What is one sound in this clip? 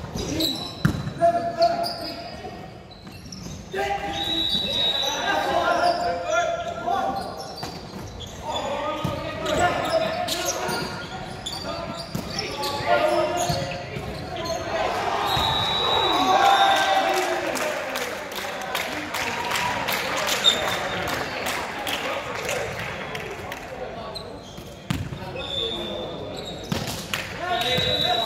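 Sneakers squeak on a hard gym floor.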